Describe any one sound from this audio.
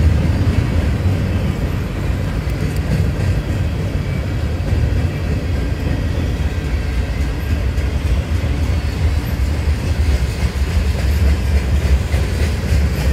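A long freight train rumbles and clatters steadily past on the tracks nearby.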